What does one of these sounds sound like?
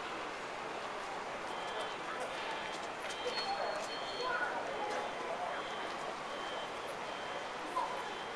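Distant voices of passers-by chatter faintly.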